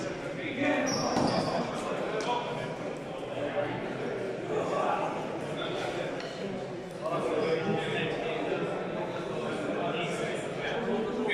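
Adult men talk and call out in a large echoing hall.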